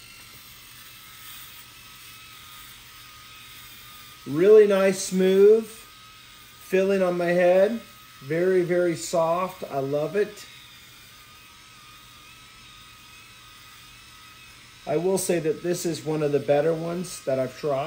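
An electric shaver hums softly against a head.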